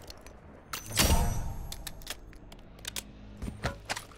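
A game chime sounds for a completed challenge.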